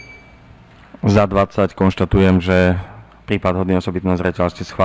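Another middle-aged man speaks into a microphone.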